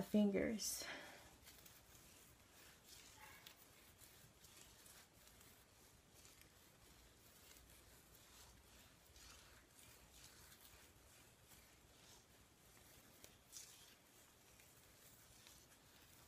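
Hands rustle softly through hair.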